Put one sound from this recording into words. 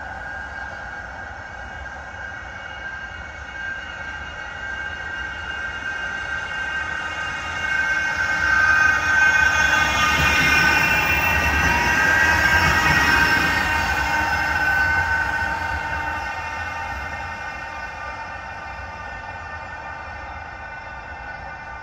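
A tram approaches, rumbles past close by and slowly fades into the distance.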